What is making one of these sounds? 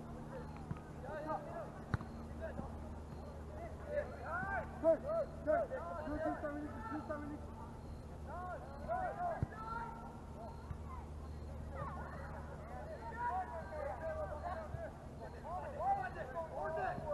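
Young players call and shout to each other across an open field in the distance.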